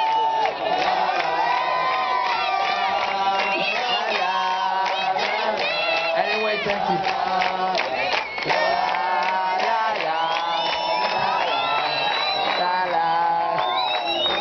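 A large crowd sings along loudly outdoors.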